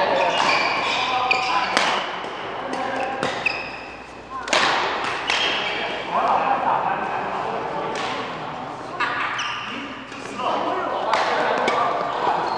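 Shuttlecocks are struck with sharp racket pops that echo in a large hall.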